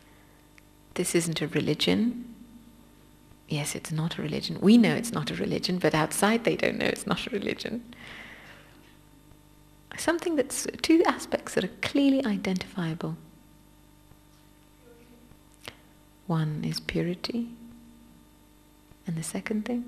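A young woman speaks calmly and warmly into a microphone, with pauses.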